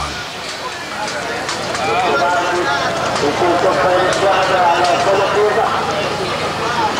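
A crowd chatters and murmurs nearby.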